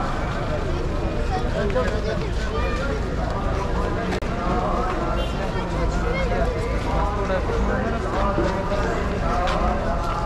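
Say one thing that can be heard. A crowd of men chants and talks together outdoors.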